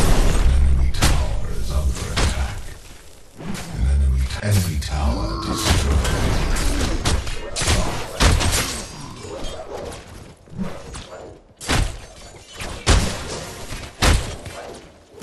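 Game sound effects of heavy melee blows land in a fight.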